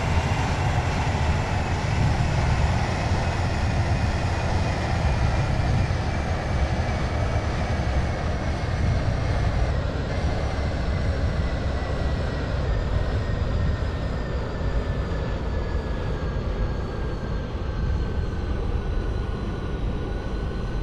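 A train's electric motor whines and slowly falls in pitch as it slows down.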